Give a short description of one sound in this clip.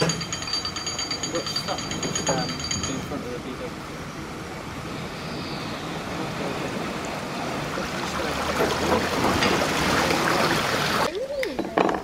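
Water gushes and splashes through a lock gate.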